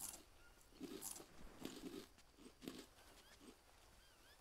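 Footsteps rustle through dense undergrowth.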